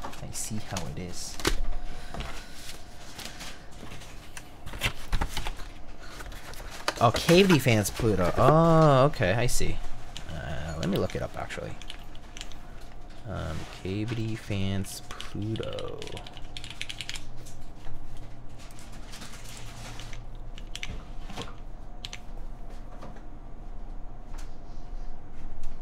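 Plastic plates clatter as they are handled.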